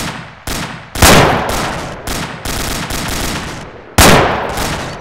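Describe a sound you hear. A rifle fires loud sharp shots.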